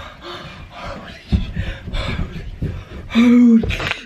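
Bare feet thud on carpeted stairs.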